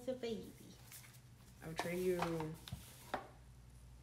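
A cardboard box is set down on a table with a soft thump.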